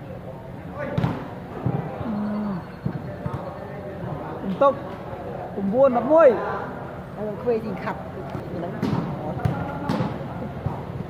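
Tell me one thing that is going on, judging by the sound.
A volleyball is struck hard by hand.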